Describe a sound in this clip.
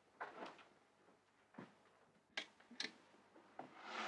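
A lamp switch clicks.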